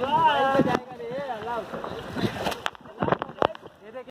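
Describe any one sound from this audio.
Water splashes against floating tubes.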